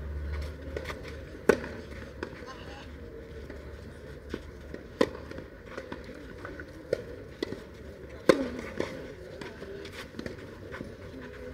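Shoes scuff and slide on a clay court.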